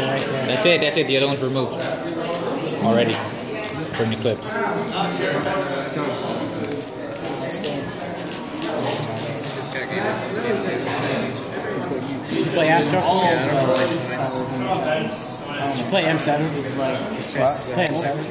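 Playing cards slap and slide softly on a table.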